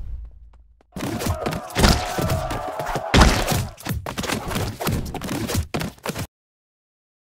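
Hammers thud and smash in a game battle.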